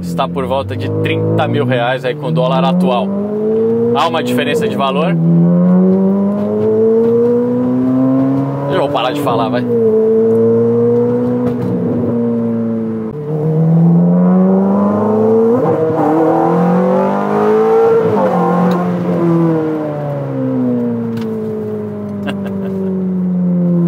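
A car engine revs up and down through the gears.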